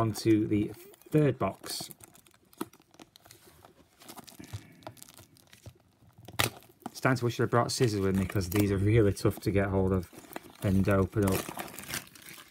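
Plastic wrapping crinkles and tears as it is pulled off.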